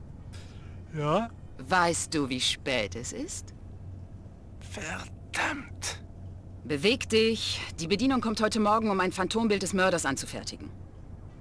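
A young woman talks briskly over a phone.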